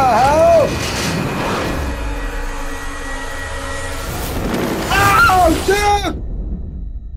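A man shouts in alarm.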